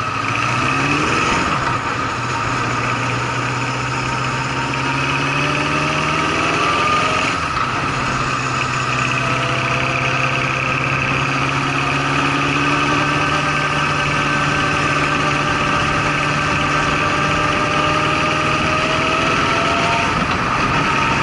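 A motorcycle engine hums steadily and its pitch rises and falls with the throttle.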